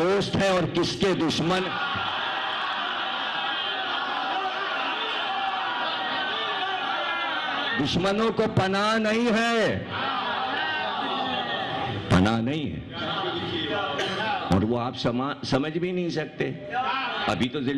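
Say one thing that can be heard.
A man chants loudly and with emotion through a microphone.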